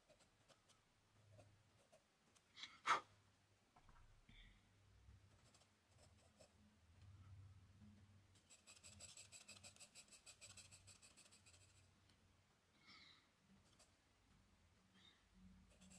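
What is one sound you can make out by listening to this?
A pencil scratches and taps softly on paper.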